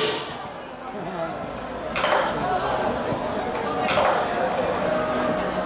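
A gong crashes loudly every few seconds.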